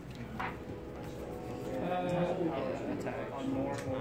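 Cards slide and tap on a soft mat.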